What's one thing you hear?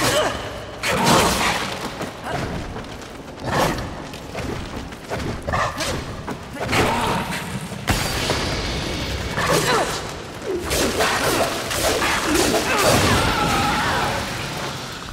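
A large creature screeches and hisses.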